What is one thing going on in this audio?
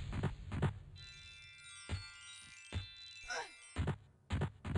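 A magic spell chimes and shimmers with high ringing tones.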